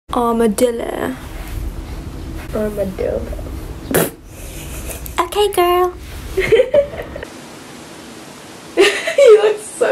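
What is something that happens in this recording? A young woman speaks close to a microphone with animated, playful inflection.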